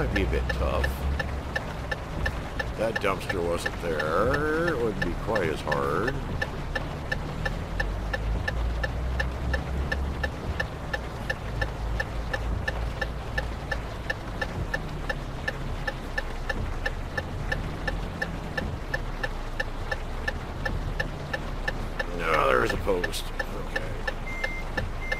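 A truck engine hums low and steady as the truck drives slowly.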